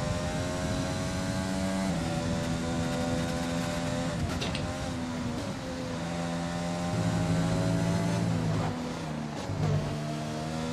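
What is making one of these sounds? A racing car engine whines loudly, rising and falling in pitch as it shifts gears.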